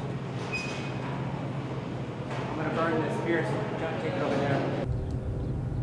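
A crowd of men murmurs in a large echoing hall.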